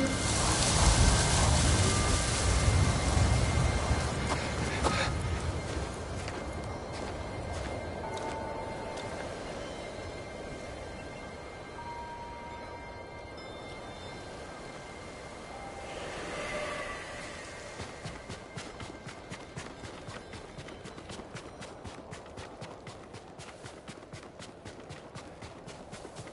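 Strong wind gusts and roars outdoors.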